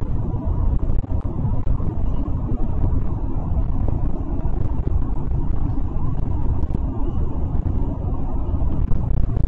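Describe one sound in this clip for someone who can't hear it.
A bus engine rumbles steadily while driving.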